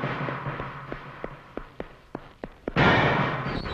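Footsteps echo along a hallway.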